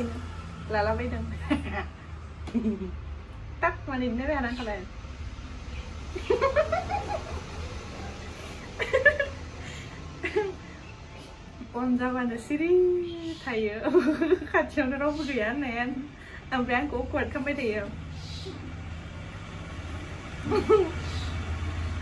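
A young woman talks cheerfully and laughs close by.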